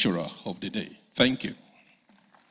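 A man speaks through a microphone and loudspeaker.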